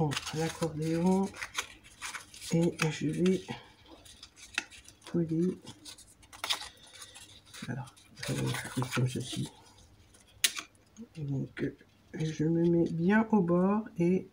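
Stiff paper crinkles and creases as it is folded.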